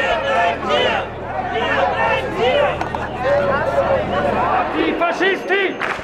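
A man speaks loudly through a loudspeaker outdoors.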